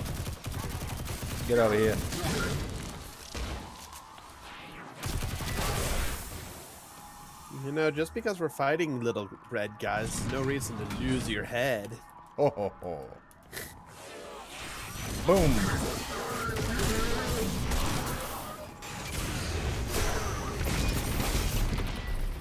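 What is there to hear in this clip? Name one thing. Video game gunfire and energy blasts crackle and boom.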